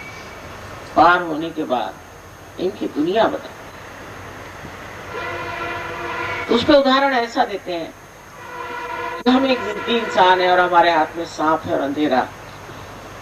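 An elderly woman speaks calmly into a microphone, with pauses.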